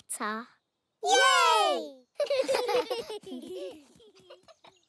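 Cartoon children's voices cheer and chant together with excitement.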